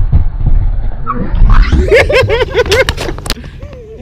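A skateboarder thuds onto a ramp in a fall.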